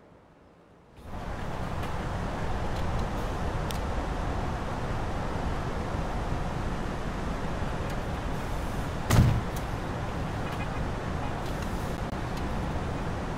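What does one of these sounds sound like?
Road traffic hums steadily.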